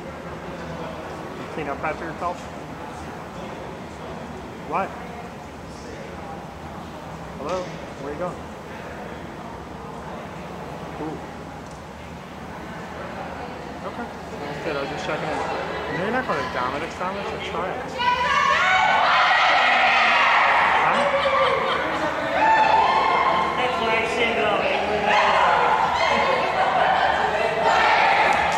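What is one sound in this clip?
Girls chatter and call out in a large echoing gym.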